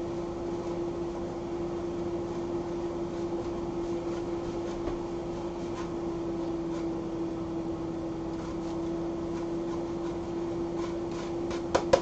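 Cheese is grated against a metal grater with soft scraping.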